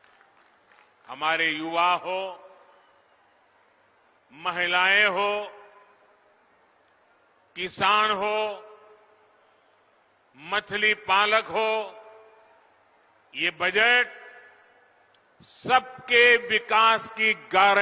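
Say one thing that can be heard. An elderly man speaks forcefully into a microphone, in bursts with pauses, over loudspeakers.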